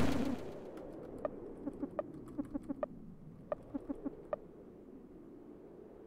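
Menu clicks tick quickly.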